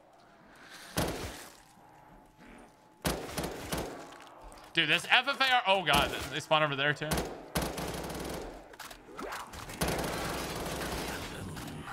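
Gunfire bursts in short rapid volleys.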